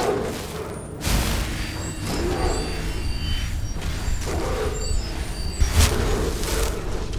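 A magic spell crackles and hums.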